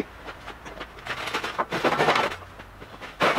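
A sheet metal bending brake creaks and scrapes as its heavy steel leaf swings up.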